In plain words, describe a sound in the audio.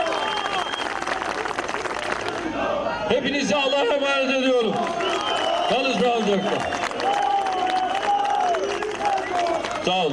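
An elderly man speaks forcefully into a microphone over loudspeakers outdoors.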